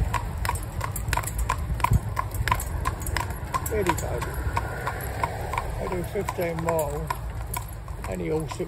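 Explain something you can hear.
Horse hooves clop steadily on a paved road.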